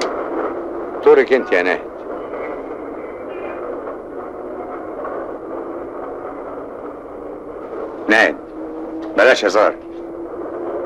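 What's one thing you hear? A man speaks in a low, firm voice.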